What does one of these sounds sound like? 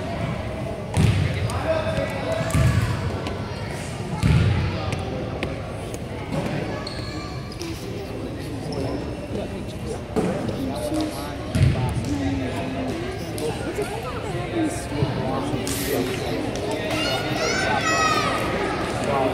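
Children slap hands in high fives.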